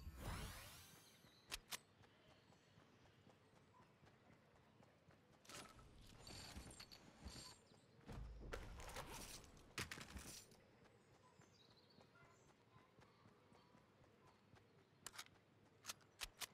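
Footsteps patter quickly over soft ground.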